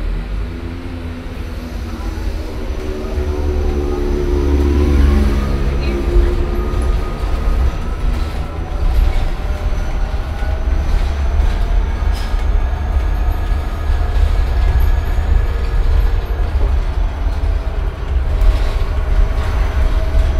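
A bus engine whines, rising in pitch as the bus speeds up.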